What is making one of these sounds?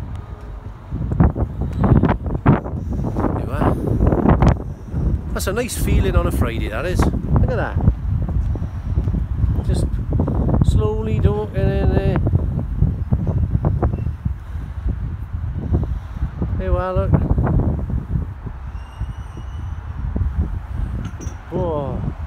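Wind blows outdoors and rumbles.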